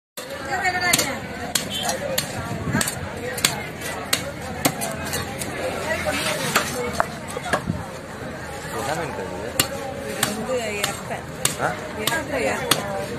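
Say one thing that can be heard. A heavy knife chops sharply through fish onto a wooden block.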